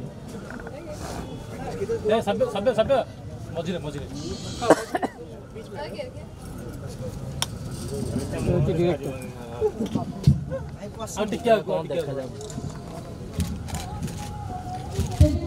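A crowd of men and women chatter and call out close by.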